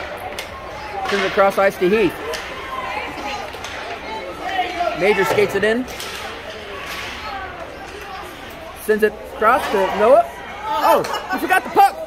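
Ice skates scrape and glide across ice in a large echoing hall.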